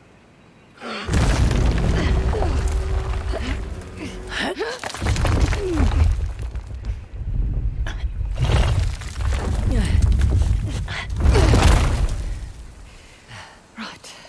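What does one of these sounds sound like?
A heavy stone slab rumbles and grinds.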